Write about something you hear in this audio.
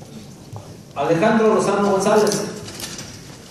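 A man shouts loudly in an echoing hall.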